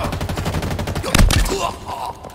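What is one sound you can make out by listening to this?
A heavy melee blow thuds.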